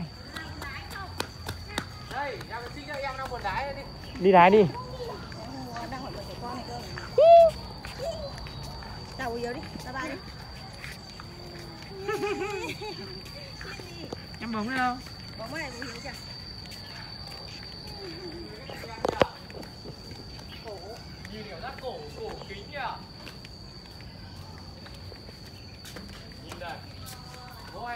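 Young children shout and squeal playfully nearby.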